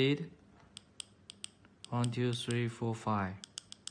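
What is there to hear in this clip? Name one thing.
Buttons click under a thumb.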